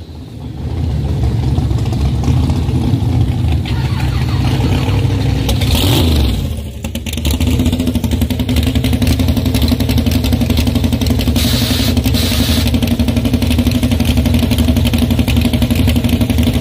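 A powerful car engine rumbles and revs unevenly at idle.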